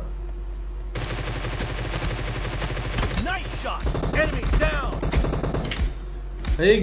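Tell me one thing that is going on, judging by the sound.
Gunfire rattles rapidly in a video game.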